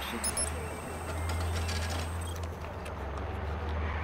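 A cash machine beeps as buttons are pressed.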